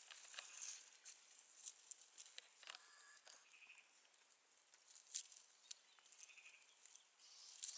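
An animal snuffles and digs through dry leaves and twigs close by, with soft crackles and rustles.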